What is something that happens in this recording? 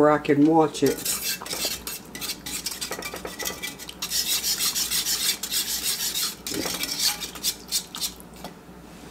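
A spoon stirs thick sauce in a pan, scraping and squelching.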